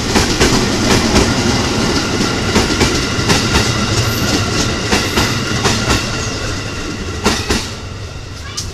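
A train rumbles past close by, its wheels clattering rhythmically over the rail joints.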